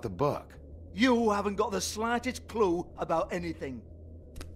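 A man answers in a gruff, scornful voice.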